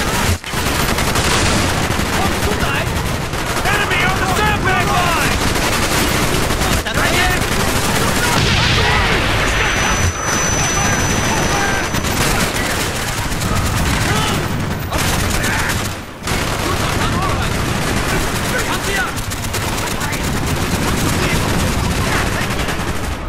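Rapid gunfire crackles and pops close by.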